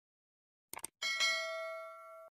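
A bell chimes and rings out.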